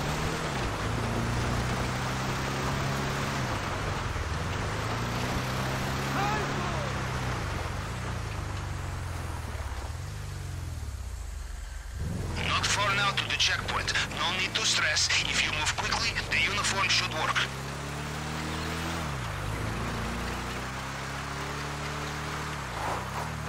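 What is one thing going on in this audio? A truck engine hums and revs up and down as the truck drives.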